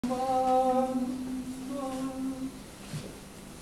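A young man sings long, held notes.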